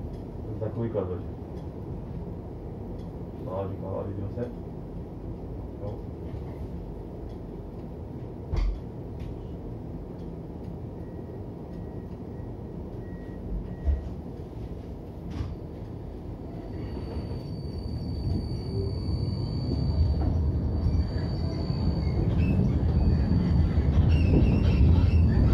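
A tram rumbles along its rails, heard from inside, growing louder toward the end.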